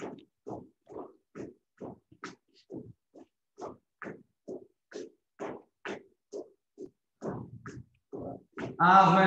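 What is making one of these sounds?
A boy's feet thump rhythmically on the floor as he jumps.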